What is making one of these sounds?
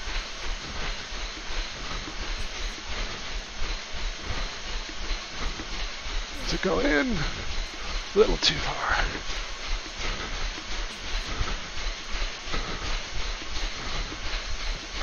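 Feet pound steadily on a running treadmill.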